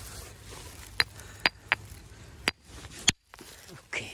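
A hammer knocks sharply against rock.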